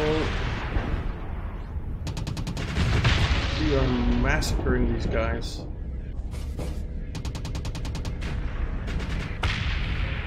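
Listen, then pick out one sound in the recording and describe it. Laser weapons zap in short bursts.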